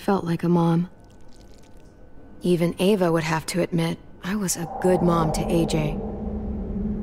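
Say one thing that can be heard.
A young girl speaks softly and sadly, close by.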